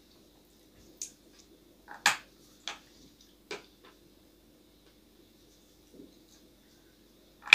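A young man bites and chews food with soft crunching sounds.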